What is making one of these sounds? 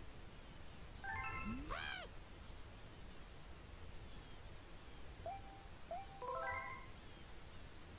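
Short chiming blips play in quick runs.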